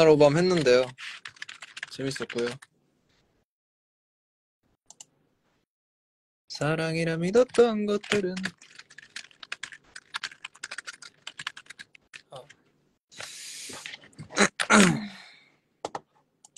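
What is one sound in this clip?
Fingers tap on a keyboard.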